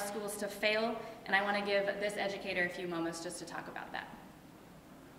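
A young woman speaks calmly into a microphone in an echoing room.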